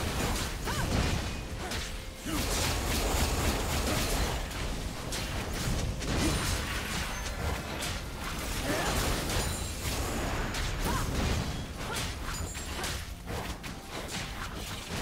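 Magic blasts and hits crackle in a fast video game fight.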